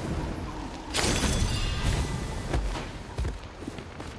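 A fiery blast booms loudly.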